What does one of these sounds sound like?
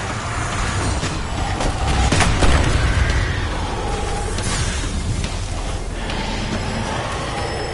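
Explosions rumble and crackle.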